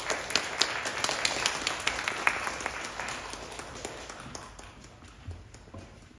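An audience applauds and the clapping fades away.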